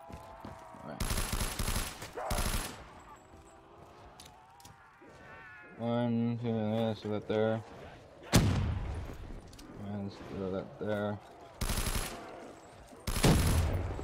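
A machine gun fires in loud, short bursts.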